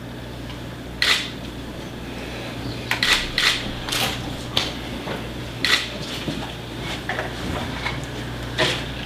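A woman sobs and sniffles near a microphone.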